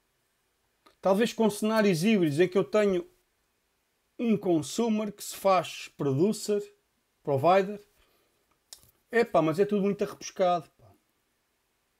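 A man speaks calmly into a close microphone, in bursts with pauses.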